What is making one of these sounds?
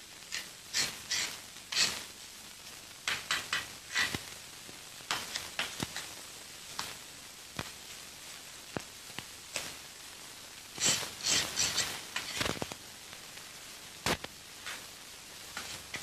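A tool scrapes and knocks against loose rocks.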